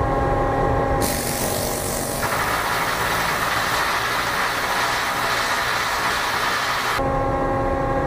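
A power tool grinds loudly against a metal deck.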